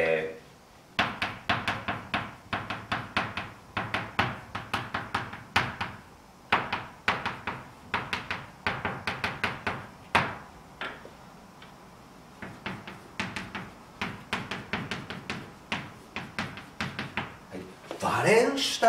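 Chalk taps and scrapes rapidly on a blackboard.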